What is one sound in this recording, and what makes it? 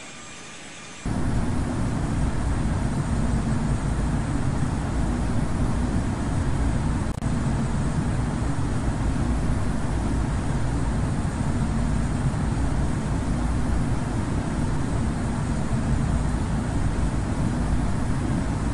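Jet engines rumble loudly and steadily.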